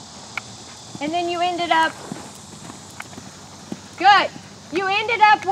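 A woman calls out loudly nearby.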